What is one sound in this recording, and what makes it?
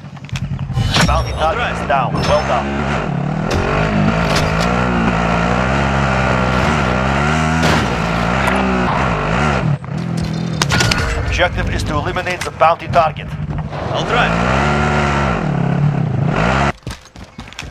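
An off-road buggy engine revs.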